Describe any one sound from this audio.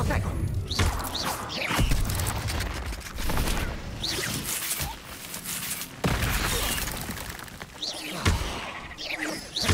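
Magic blasts whoosh and crackle during a fight.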